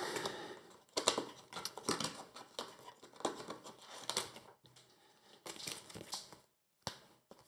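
Playing cards rustle and tap softly on a table.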